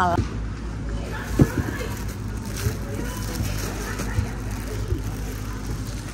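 A plastic bag rustles and crinkles in a hand.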